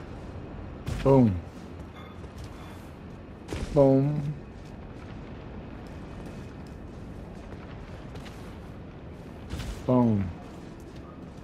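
A sword strikes with heavy, ringing blows.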